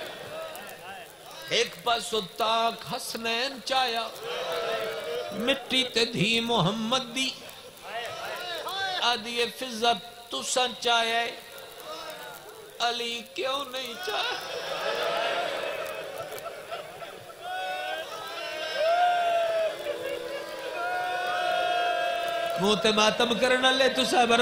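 A man speaks passionately into a microphone over loudspeakers, his voice echoing.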